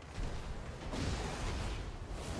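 A blade swishes through the air with a loud whoosh.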